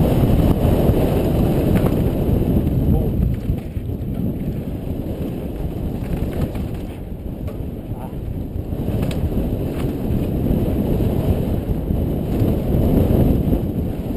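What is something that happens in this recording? Wind rumbles across a helmet-mounted microphone during a fast descent.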